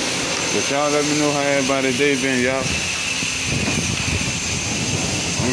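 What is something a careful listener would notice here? A pressure washer sprays water in a steady, hissing stream.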